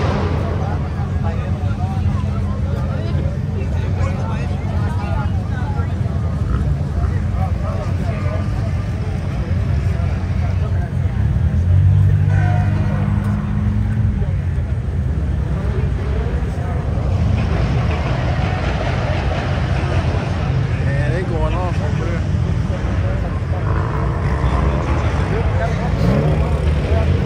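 A crowd of people chatter and call out outdoors.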